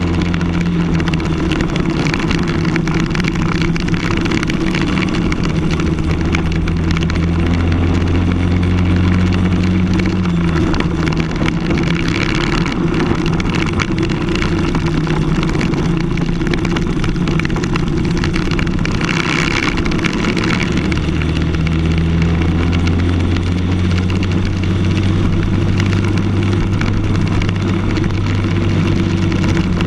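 A kart engine buzzes loudly up close, revving up and down through the laps.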